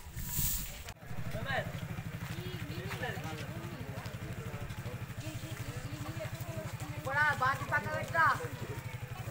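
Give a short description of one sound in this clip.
A woman talks nearby.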